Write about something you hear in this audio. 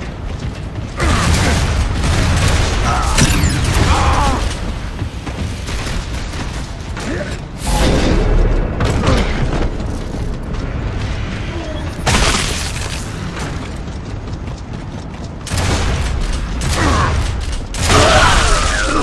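A shotgun fires in loud, sudden blasts.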